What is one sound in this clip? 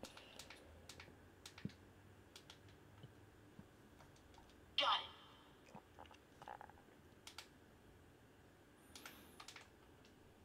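Buttons on a handheld game console click softly as they are pressed.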